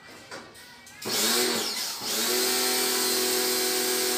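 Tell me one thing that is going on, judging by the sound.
A motorised sprayer roars on, hissing loudly with a droning whine.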